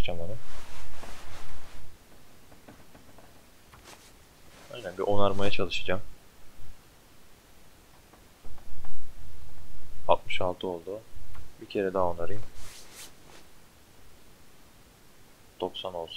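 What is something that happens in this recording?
A young man talks animatedly into a close microphone.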